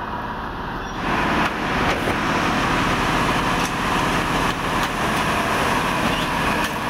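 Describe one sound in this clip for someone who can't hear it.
A heavy track machine rumbles and clatters past close by.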